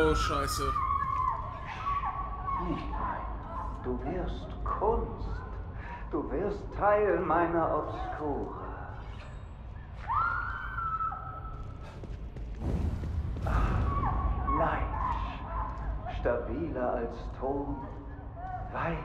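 Footsteps pad softly on carpet.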